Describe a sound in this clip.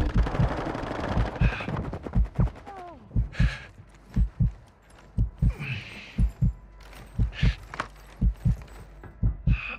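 Footsteps thud quickly on a hard roof.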